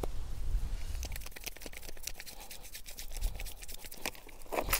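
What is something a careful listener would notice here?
Hands slap and pat rapidly on a man's head.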